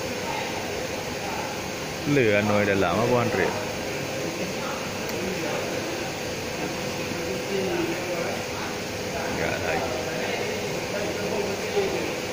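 Machinery hums steadily in a large echoing hall.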